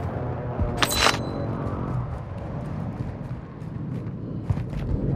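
Footsteps crunch steadily on dirt and gravel.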